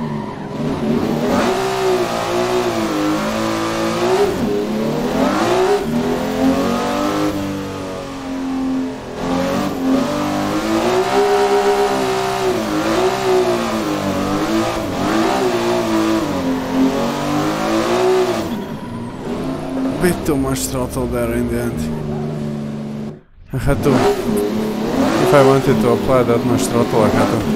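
A racing car engine revs up and down as gears shift.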